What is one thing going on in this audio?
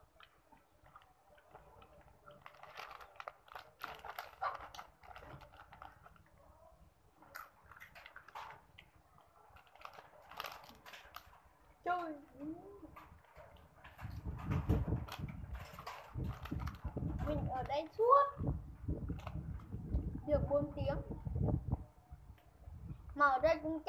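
A plastic snack bag crinkles in a boy's hands.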